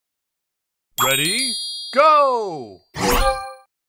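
A cheerful game jingle plays with swooping tones.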